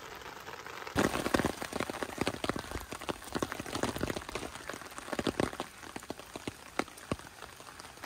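Raindrops tap unevenly on a tent.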